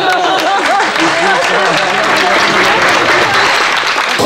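A young woman laughs brightly.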